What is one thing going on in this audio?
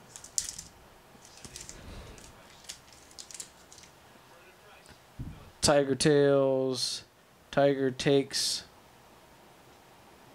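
Stiff cards slide and tap against each other in hands.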